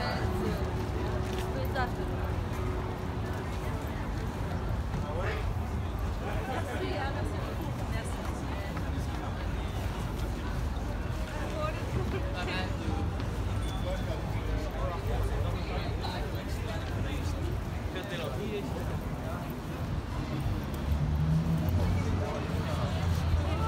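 A crowd of passers-by murmurs and chatters on a busy pavement outdoors.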